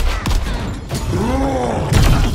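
A creature roars loudly.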